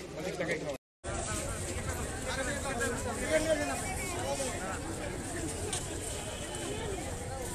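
A crowd of men and women chatters loudly nearby.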